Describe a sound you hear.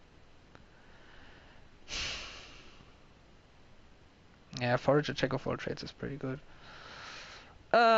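Playing cards slide onto a table with a soft swish.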